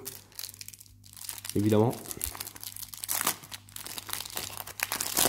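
Fingers crinkle and tear a plastic wrapper.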